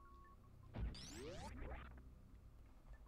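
Video game sound effects zap and sweep upward.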